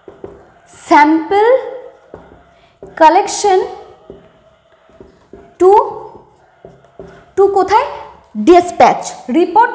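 A young woman speaks clearly into a close microphone.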